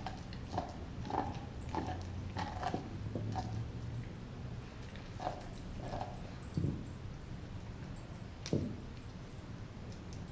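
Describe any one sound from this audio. A dog gnaws and chews noisily on a bone.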